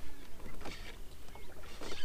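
A fishing line whooshes as a rod casts.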